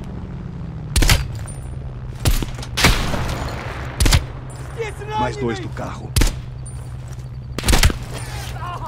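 A rifle fires loud single shots, a few seconds apart.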